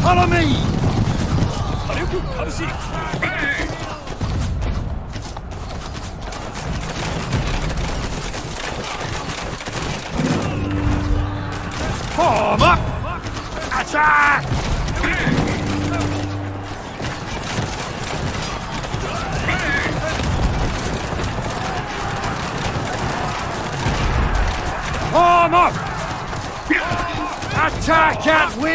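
A large battle rages with clashing weapons.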